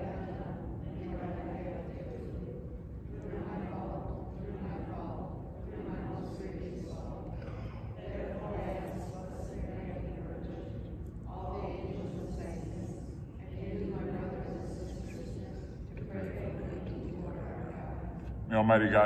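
An elderly man speaks calmly and steadily, in a room with a slight echo.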